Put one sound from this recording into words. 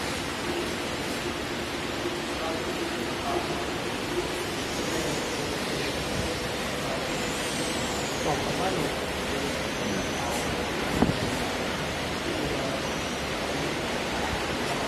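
A testing machine's motor hums steadily.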